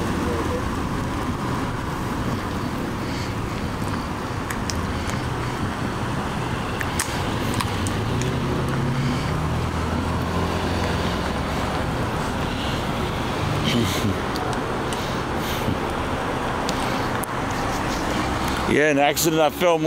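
Cars drive past on a road at night.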